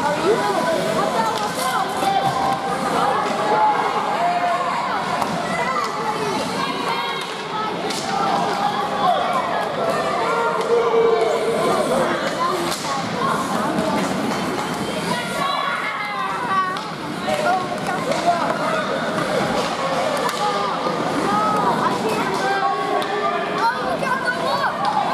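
Ice skates scrape across ice.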